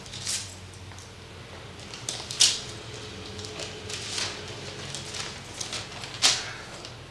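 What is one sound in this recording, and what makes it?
Paper rustles as an envelope is torn open.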